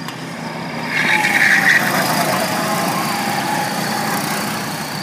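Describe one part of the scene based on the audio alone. A model car races past close by with a loud whine.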